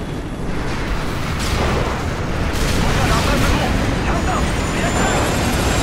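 A helicopter's rotor drones overhead.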